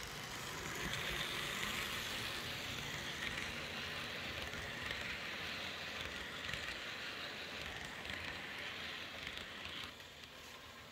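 A model passenger train rolls and clatters along model track.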